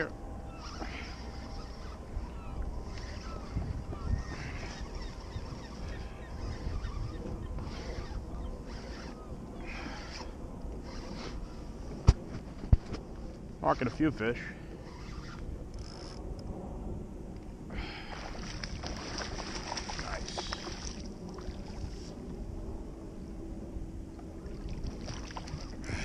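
Wind rumbles across open water.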